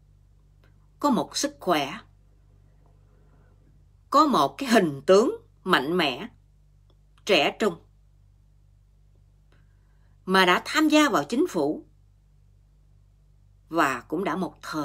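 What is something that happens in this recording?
A middle-aged woman speaks calmly and closely into a microphone, in short phrases with pauses.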